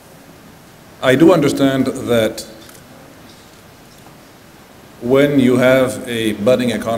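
A middle-aged man speaks deliberately into a microphone, heard through loudspeakers in a large hall.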